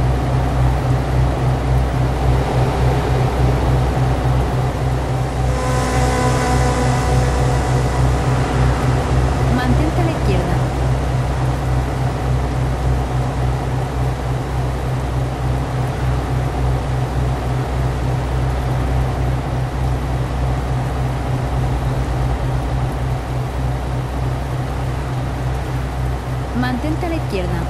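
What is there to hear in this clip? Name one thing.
A truck's diesel engine drones steadily at cruising speed.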